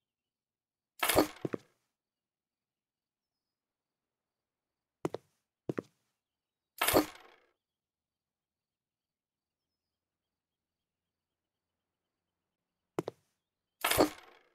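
Short swooshing interface sounds play as a menu opens and closes.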